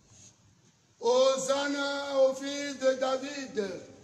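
Several men sing a hymn together nearby.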